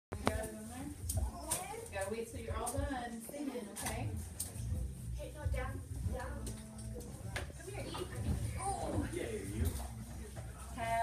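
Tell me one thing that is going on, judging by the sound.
Young children chatter and call out in a room.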